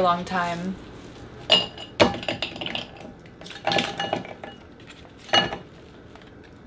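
Ice cubes crack and clatter into a bowl.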